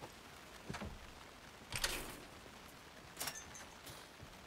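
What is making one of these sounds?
A metal gate rattles and clanks.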